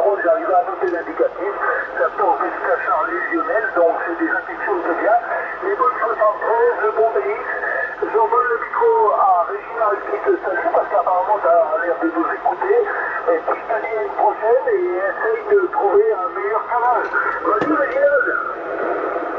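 A voice talks through a radio speaker, thin and muffled.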